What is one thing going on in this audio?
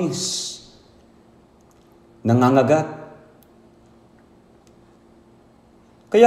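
An elderly man speaks slowly and solemnly into a microphone.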